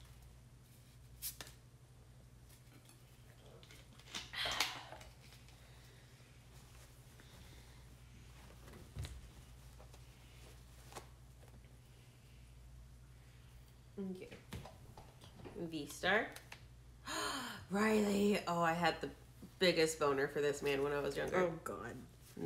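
Trading cards rustle and tap on a table.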